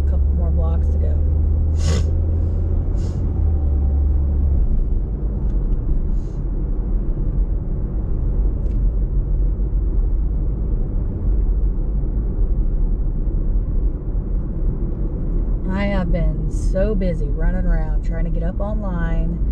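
A car engine hums steadily with road rumble, heard from inside the car.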